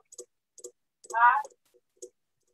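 A woman gives a short laugh over an online call.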